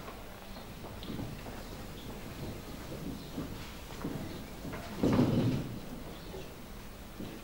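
A man speaks calmly, a little way off.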